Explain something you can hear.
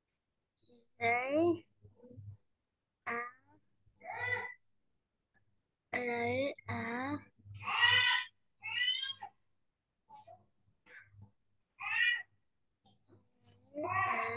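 A young girl repeats words over an online call.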